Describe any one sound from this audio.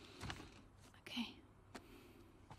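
A girl answers quietly.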